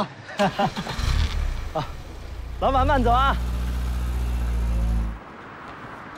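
A car engine hums as an SUV rolls past.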